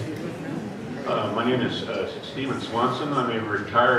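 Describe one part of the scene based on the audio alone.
An older man speaks into a microphone.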